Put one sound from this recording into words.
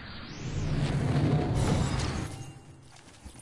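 Wind rushes loudly as a glider swoops down.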